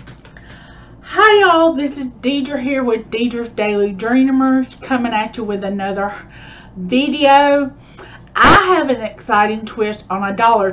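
A woman talks with animation, close to a microphone.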